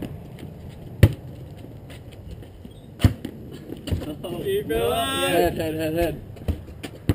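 A basketball bounces on pavement with sharp thuds.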